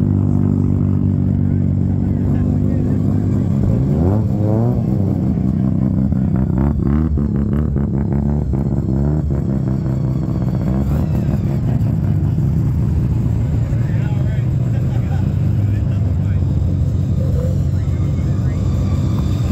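Classic car engines rumble steadily as they pull past one after another.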